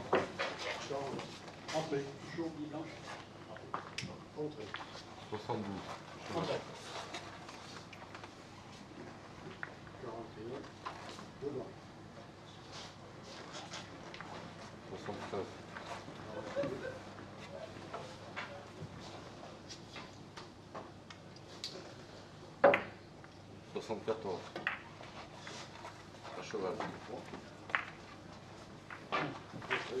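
Men talk quietly nearby.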